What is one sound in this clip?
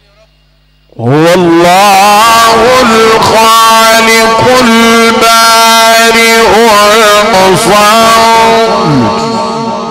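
A man chants in a long, wavering melodic voice through a loud microphone.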